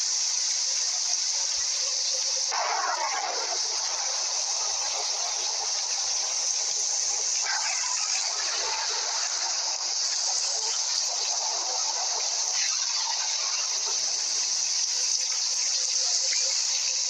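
Rain falls steadily with a constant hiss.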